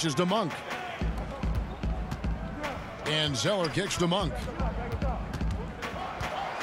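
A basketball bounces repeatedly on a hardwood floor.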